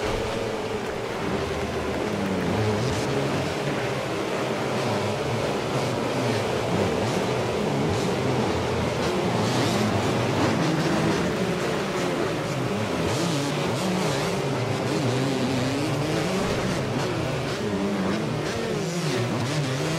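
Several motorbike engines whine and rev, rising and falling in pitch.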